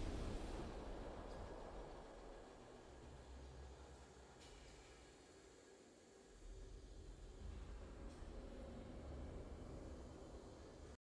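Triumphant game music plays with a low rumble.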